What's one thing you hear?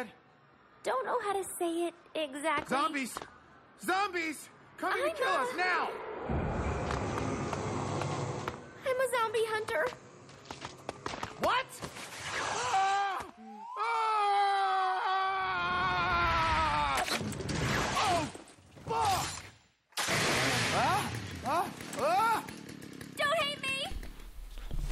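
A young woman speaks playfully and with animation, close by.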